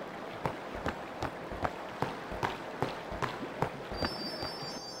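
Footsteps run quickly over soft ground.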